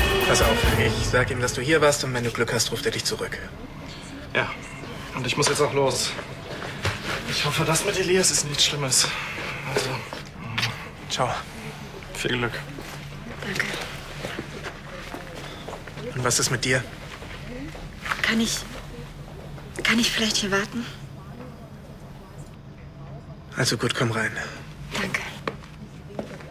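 A young man speaks calmly and closely.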